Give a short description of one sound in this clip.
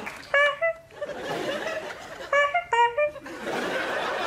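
A woman exclaims loudly in high, excited cries.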